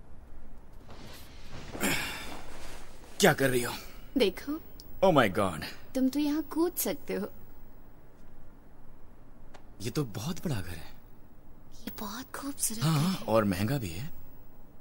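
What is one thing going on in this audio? A young woman talks softly and close by.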